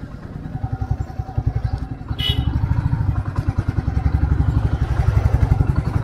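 A Royal Enfield single-cylinder motorcycle engine thumps at low speed.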